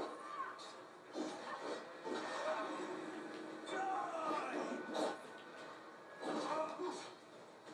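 Game sounds play through a television speaker.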